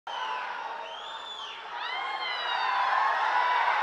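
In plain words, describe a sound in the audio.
Members of a crowd whistle shrilly.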